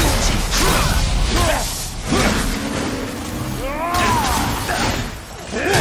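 Magic energy crackles and bursts.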